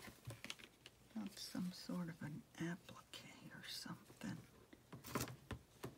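Paper rustles and crinkles as a hand presses it down.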